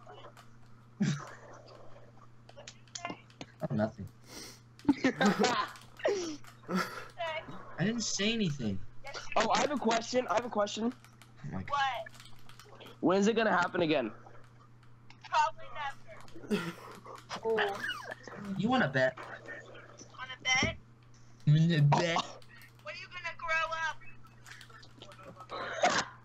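Teenage boys talk and laugh loudly over an online call.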